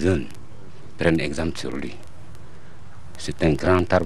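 An elderly man speaks into microphones in short, calm phrases.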